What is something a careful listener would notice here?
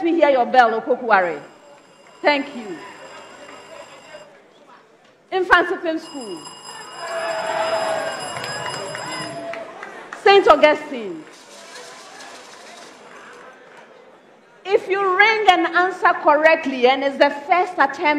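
A woman asks questions quickly into a microphone.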